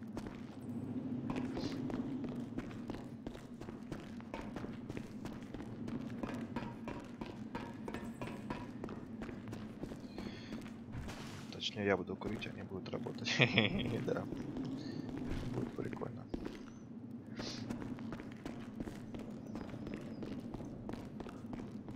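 Footsteps crunch on gravel at a steady walking pace.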